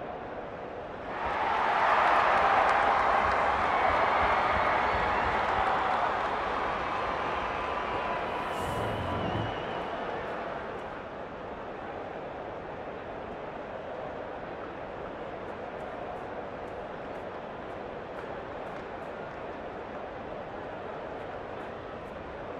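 A large stadium crowd roars loudly, then settles to a steady murmur.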